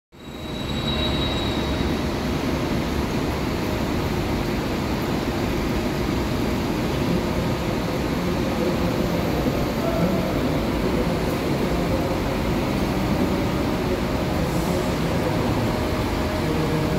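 A bus engine rumbles as a coach drives slowly closer and passes by.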